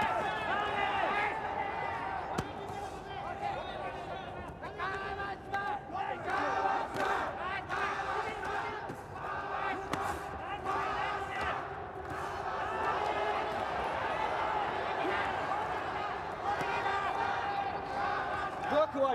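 Boxing gloves thud against bodies in quick blows.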